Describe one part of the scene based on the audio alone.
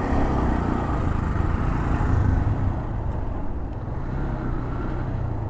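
A motorcycle engine hums steadily up close.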